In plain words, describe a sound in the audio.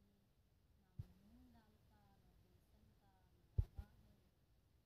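A spoon taps and scrapes against a clay pot.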